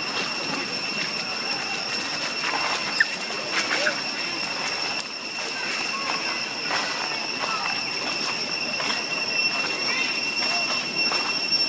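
Dry leaves rustle and crunch as monkeys walk over them.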